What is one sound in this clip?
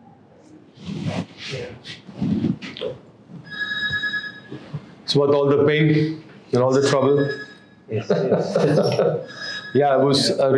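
A man chuckles softly close by.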